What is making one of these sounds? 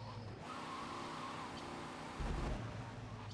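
A sports car engine roars loudly.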